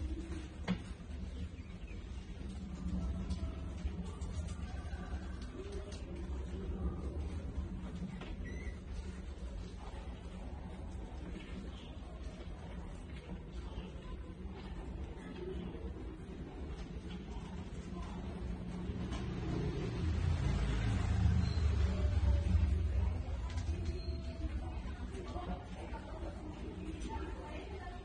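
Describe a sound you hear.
Many mice scratch and scrabble against glass.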